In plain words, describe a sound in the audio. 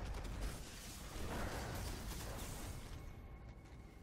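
A loud blast bursts and rumbles.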